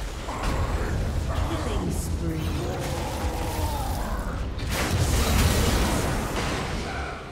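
Magic blasts and explosions crackle and boom in a fast fight.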